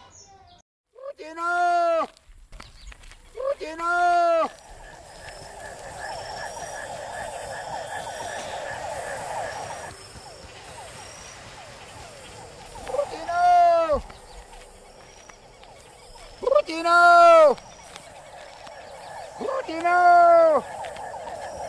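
An elderly man calls out loudly in long, drawn-out calls.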